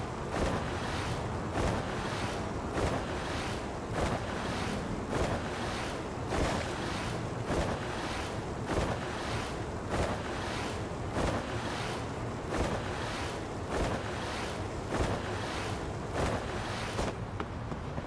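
Skateboard wheels roll over pavement with a regular push every second or so.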